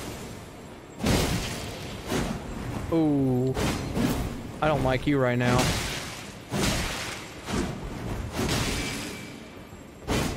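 Heavy blades clash and strike with sharp, ringing impacts.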